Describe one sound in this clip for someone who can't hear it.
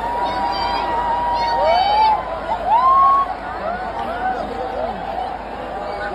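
A large crowd cheers and shouts in a vast open arena.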